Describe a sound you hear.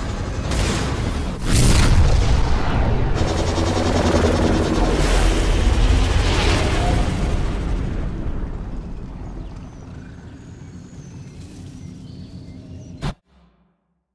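A hovering craft's engines roar and whoosh, then fade away.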